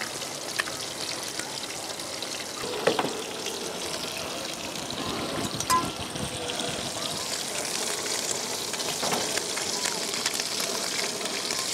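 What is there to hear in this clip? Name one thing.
Fish sizzles and crackles in a hot pan.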